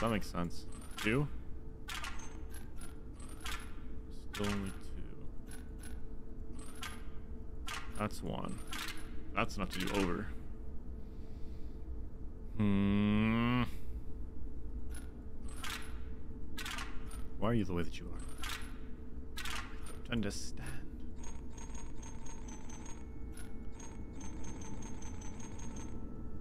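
Game puzzle tiles click and chime as they slide.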